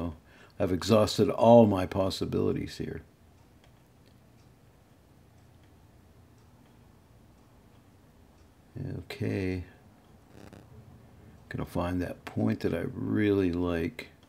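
A man speaks calmly and closely into a microphone, with pauses.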